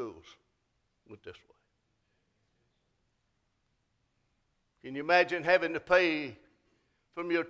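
An elderly man speaks slowly into a microphone over loudspeakers, with long pauses.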